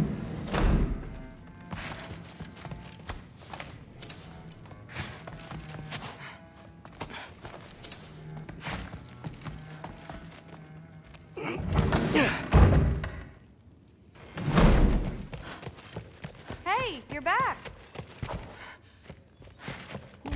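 Footsteps thud on wooden floorboards.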